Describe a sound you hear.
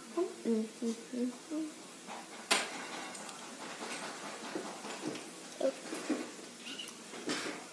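A young girl cracks and peels a crawfish shell with her fingers.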